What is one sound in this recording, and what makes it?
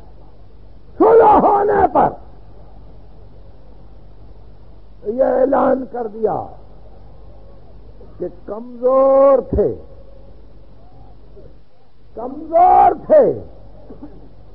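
An elderly man chants in melodic phrases with pauses between them, heard through an old tape recording.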